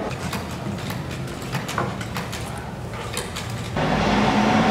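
A sewing machine whirs and clatters as it stitches.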